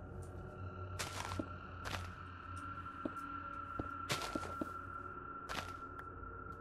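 Stone blocks are placed with short soft thuds.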